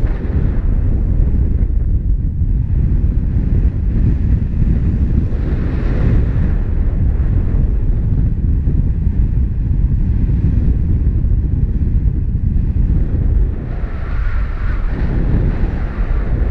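Strong wind rushes and buffets loudly, as if heard in flight high in the open air.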